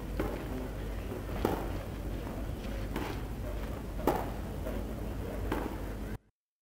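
A tennis ball is struck back and forth with sharp pops, outdoors.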